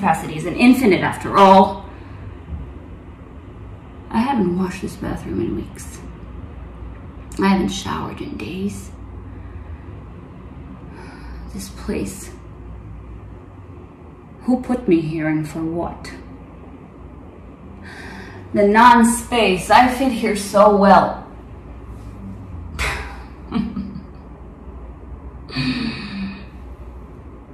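A young woman speaks softly and haltingly close by, with long pauses.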